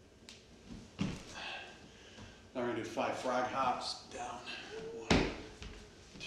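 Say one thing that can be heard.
Feet thud on a wooden floor.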